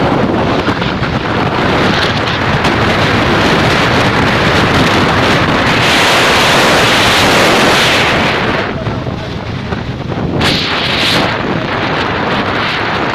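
Tyres roar on asphalt at speed.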